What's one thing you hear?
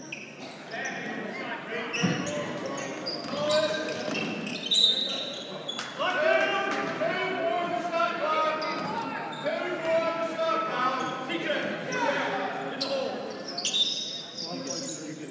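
A crowd of spectators cheers and shouts in an echoing gym.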